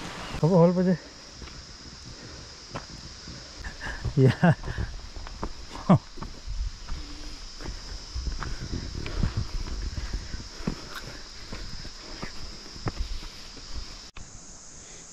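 Footsteps crunch on a stony dirt path.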